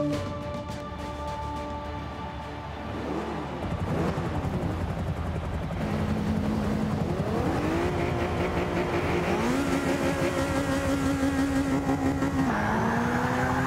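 A racing car engine idles and revs.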